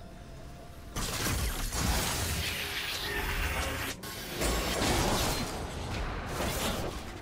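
Video game spell effects whoosh and crackle in a fast fight.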